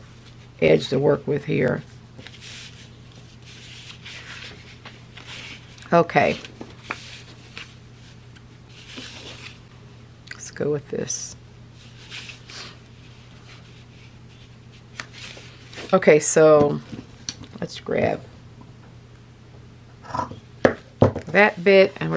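Paper and fabric rustle and rub under hands.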